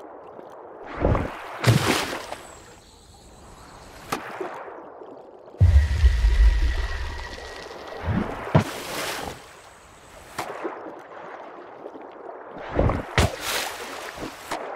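Water splashes as a small creature leaps out and drops back in.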